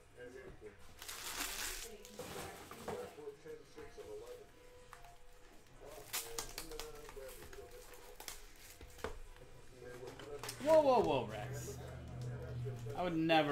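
Plastic wrapping rustles and tears off a box.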